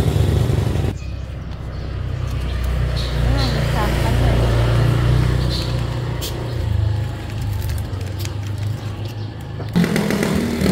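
A young boy talks calmly, close by.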